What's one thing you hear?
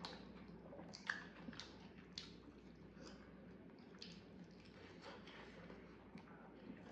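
Food squelches and rustles as fingers pick it up.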